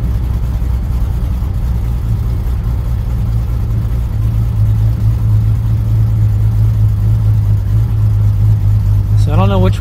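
Road noise rumbles low inside a moving car.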